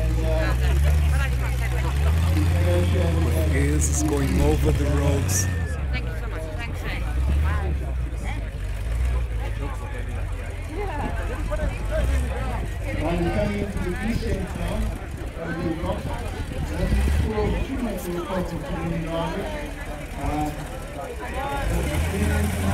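An off-road vehicle's engine rumbles and revs as it climbs over rocks.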